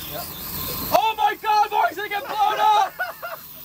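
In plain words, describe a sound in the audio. A man shouts with excitement.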